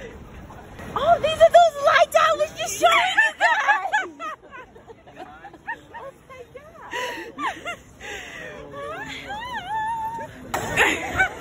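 A young woman talks and laughs close by with animation.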